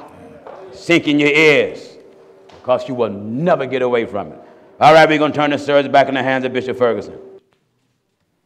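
A middle-aged man preaches with animation through a microphone.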